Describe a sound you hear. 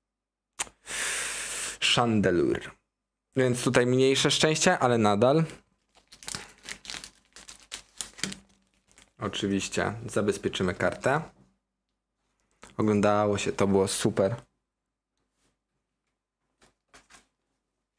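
Trading cards rustle and slide against each other in someone's hands.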